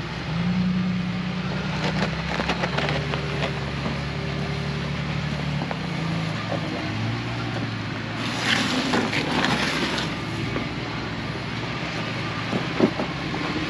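An off-road truck engine rumbles and revs as it crawls over rocks.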